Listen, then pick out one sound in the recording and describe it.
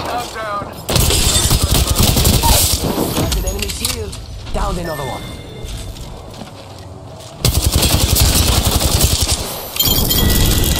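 A rapid-fire gun shoots in loud, fast bursts.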